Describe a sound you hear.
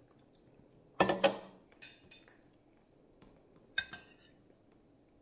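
Cutlery clinks and scrapes against a plate.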